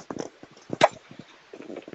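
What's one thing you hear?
A pickaxe strikes crystal with sharp clinks.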